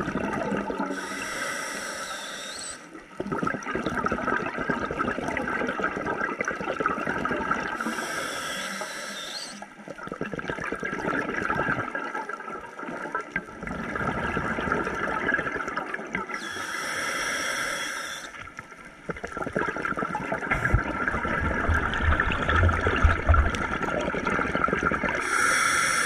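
A diver's regulator hisses with each breath in.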